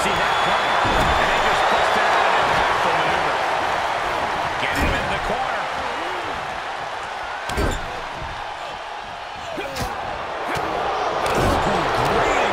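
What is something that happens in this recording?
Heavy thuds of bodies hitting the ring mat ring out now and then.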